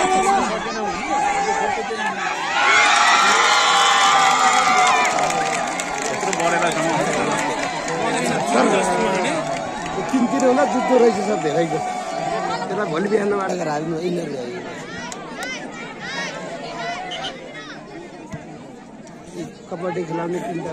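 A large outdoor crowd cheers and shouts loudly.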